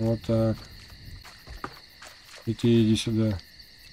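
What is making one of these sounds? A wooden barrel tips over and thuds onto the ground.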